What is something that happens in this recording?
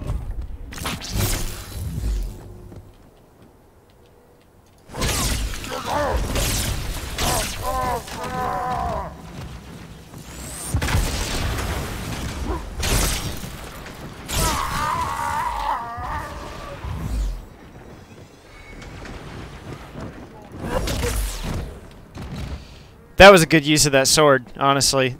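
An energy sword swings and slashes with sharp electric whooshes.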